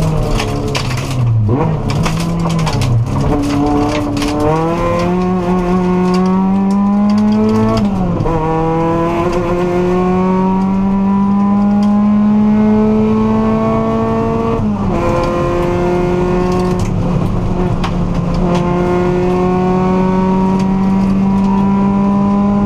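The turbocharged flat-four engine of a rally car accelerates hard from inside the cabin, shifting up through the gears.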